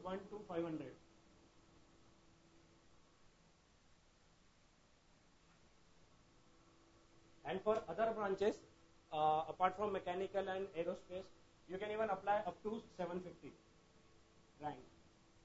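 A man speaks calmly, explaining, close to a microphone.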